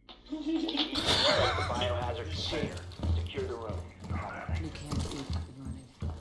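Footsteps thud across a wooden floor.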